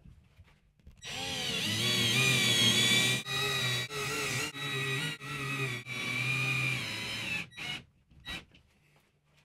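A cordless drill whirs in short bursts, driving screws into a wall.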